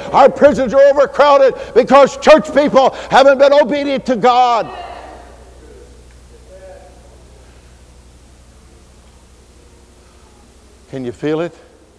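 An elderly man preaches loudly and forcefully into a microphone.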